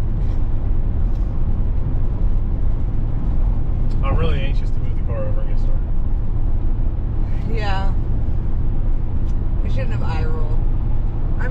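A car's engine and tyres rumble steadily from inside the car.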